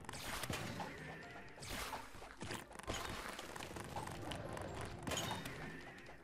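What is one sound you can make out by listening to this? Video game spell blasts whoosh and burst over and over.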